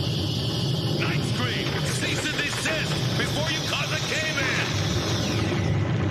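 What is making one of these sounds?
A large beast growls and roars loudly.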